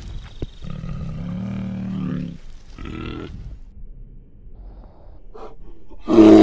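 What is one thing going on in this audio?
A bear growls deeply.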